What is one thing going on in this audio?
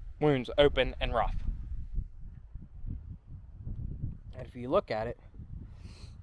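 A young man speaks calmly close to the microphone.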